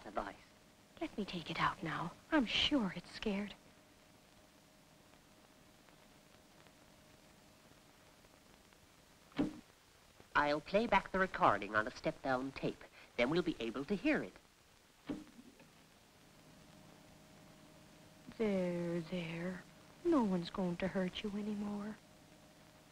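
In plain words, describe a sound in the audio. A woman speaks softly and close by.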